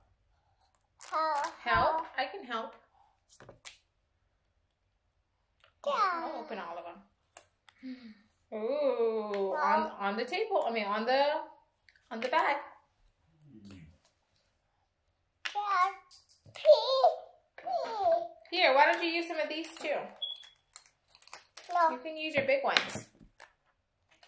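A young child talks close by in short bursts.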